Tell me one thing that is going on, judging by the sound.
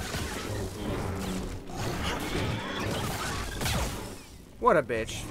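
Lightsabers hum and swish in combat.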